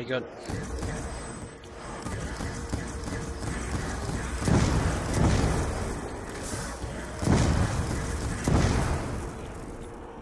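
Energy blasts boom and explode in bursts.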